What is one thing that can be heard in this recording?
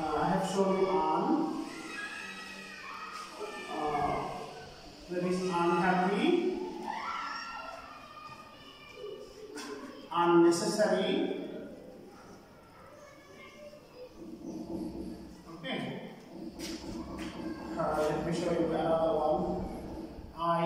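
A man speaks steadily and clearly, as if teaching.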